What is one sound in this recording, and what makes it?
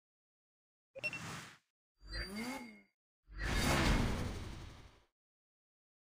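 Short whooshing sounds play as menus change.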